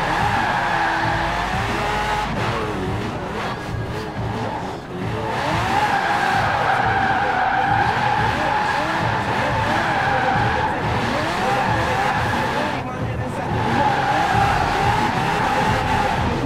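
Tyres squeal on asphalt as a limousine drifts.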